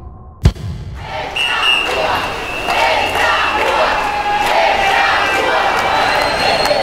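A crowd of people marches and chatters outdoors.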